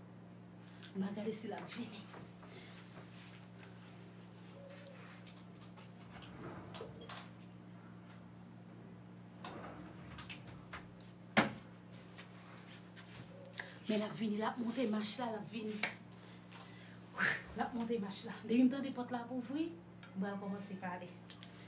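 A young woman speaks close by, in short bursts.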